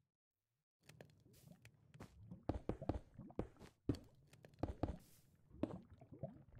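Stone blocks thud as they are placed.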